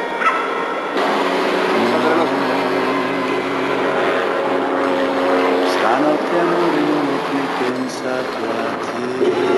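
A helicopter drones overhead with a whirring rotor.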